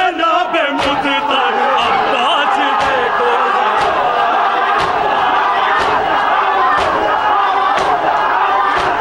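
Men beat their chests in a slow, steady rhythm.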